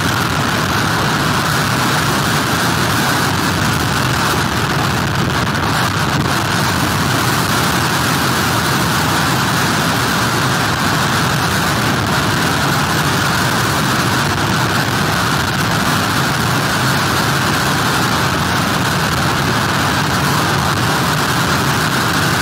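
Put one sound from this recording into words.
Heavy surf crashes and roars steadily.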